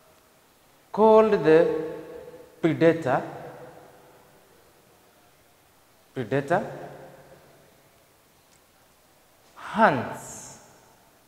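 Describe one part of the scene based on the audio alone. A man speaks with animation in short bursts.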